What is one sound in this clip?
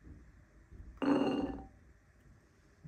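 Chickpeas tumble and rattle into a ceramic bowl.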